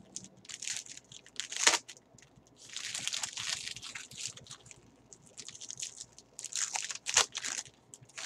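A foil card pack crinkles and tears as hands rip it open.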